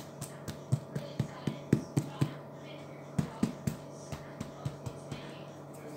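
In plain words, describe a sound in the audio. A hand taps repeatedly on a crusty loaf of bread with hollow knocks.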